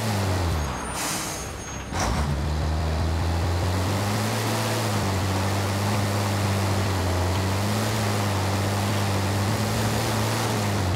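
A truck engine roars steadily, with its pitch shifting as it changes gear.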